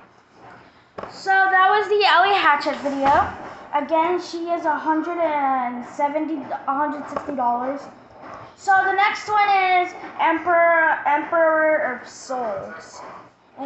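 A young boy talks loudly and with animation close by.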